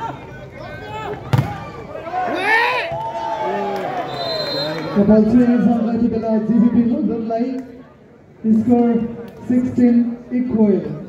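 A large outdoor crowd shouts and cheers.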